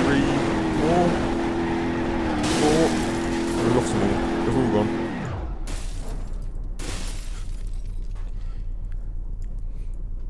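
Trailers bang and scrape together as they jackknife.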